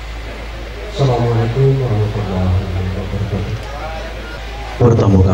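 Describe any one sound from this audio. An elderly man speaks slowly into a microphone, heard through loudspeakers.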